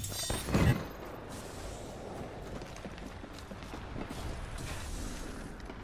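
Footsteps thud quickly on hard ground in a video game.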